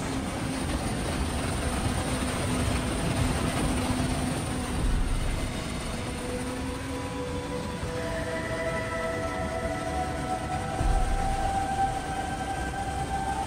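Wind buffets and roars past the microphone.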